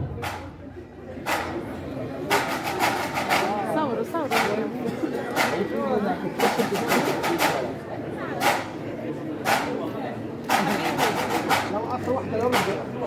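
A drum beats loudly in a steady marching rhythm, close by.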